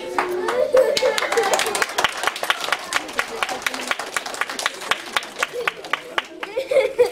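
A group of children claps rapidly.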